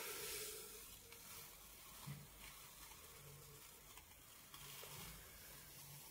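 Paper peels away from a sheet of glass with a soft rustle.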